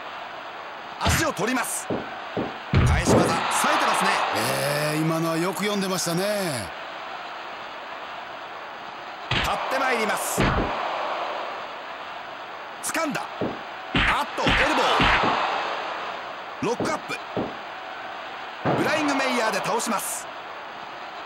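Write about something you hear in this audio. Bodies slam onto a wrestling mat with heavy thuds.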